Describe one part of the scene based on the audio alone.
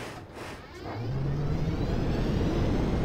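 A jet engine roars loudly and rises in pitch.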